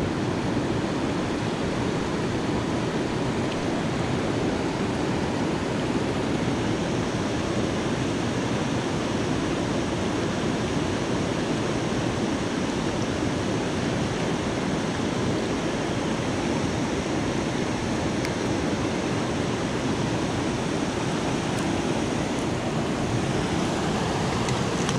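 A river rushes and splashes over rocks close by.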